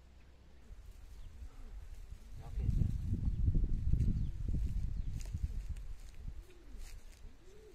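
Plastic netting rustles and drags over soil.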